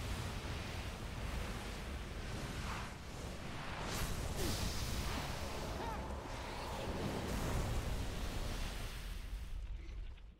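Fire roars loudly.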